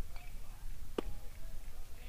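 A baseball pops sharply into a catcher's mitt.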